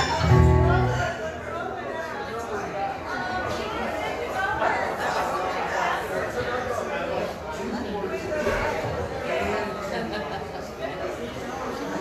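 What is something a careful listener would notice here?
An acoustic guitar is strummed through a loudspeaker.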